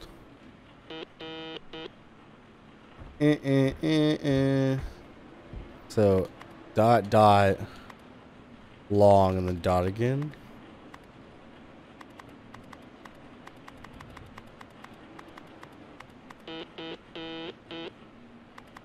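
A computer terminal plays short electronic beeps.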